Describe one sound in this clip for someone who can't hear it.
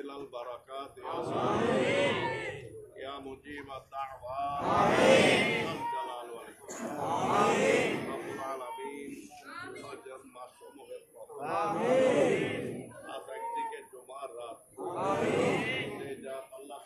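A crowd of men answers together in loud, swelling chants.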